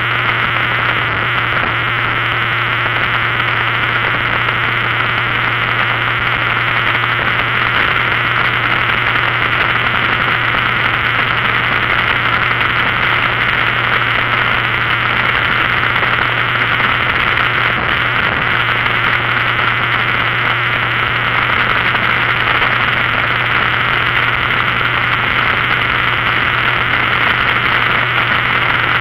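An engine hums steadily at speed.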